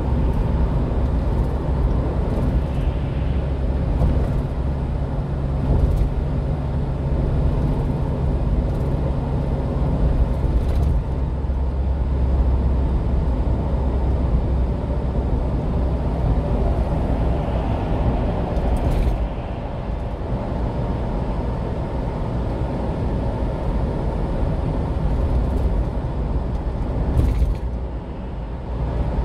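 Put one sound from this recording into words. A car's engine drones steadily as it drives along a highway.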